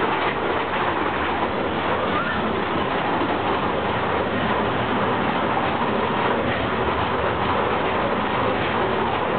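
A ride car rumbles steadily along a track.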